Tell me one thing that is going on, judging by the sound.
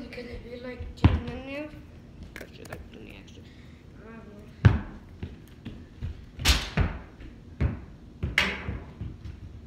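A basketball bounces on a hard floor indoors.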